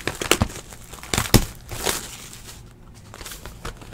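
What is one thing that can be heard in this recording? Plastic wrap crinkles as hands tear it off a box.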